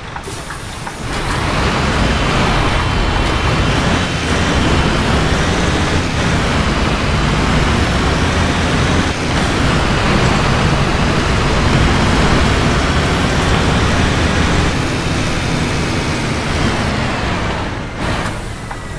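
A bus engine rumbles loudly as the bus drives along.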